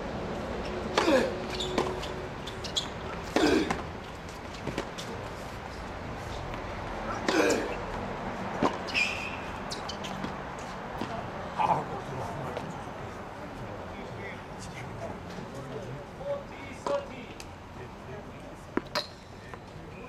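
A tennis ball is struck hard with a racket, now and then.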